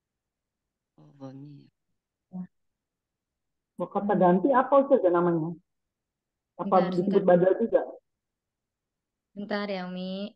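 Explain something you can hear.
A man recites and explains slowly over an online call, with pauses.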